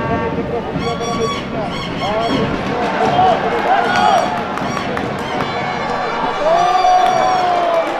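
A crowd murmurs and cheers in the stands.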